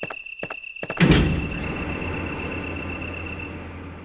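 A lift machine starts with a clunk and rumbles steadily.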